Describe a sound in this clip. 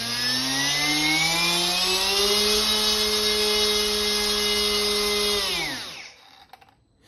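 A small electric motor spins up with a rising whine, holds a steady high hum, then winds down and stops.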